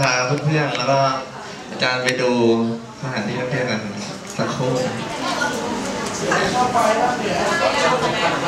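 A young woman speaks clearly nearby.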